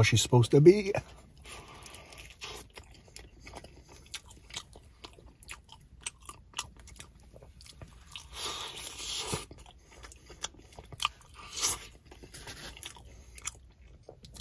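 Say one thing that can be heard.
A man bites into crunchy food and chews.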